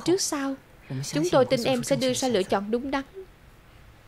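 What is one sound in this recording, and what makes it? A woman speaks calmly and earnestly, close by.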